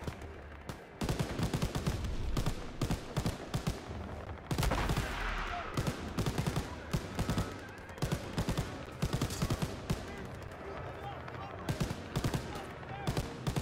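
A heavy machine gun fires in rapid bursts.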